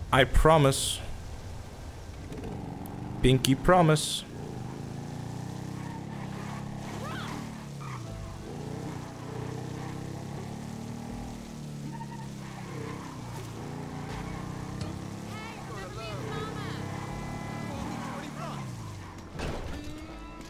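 A motorcycle engine hums and revs steadily.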